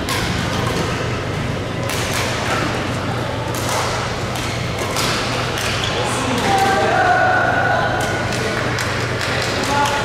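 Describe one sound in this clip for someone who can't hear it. Shuttlecocks are struck with rackets, with sharp thwacks echoing around a large hall.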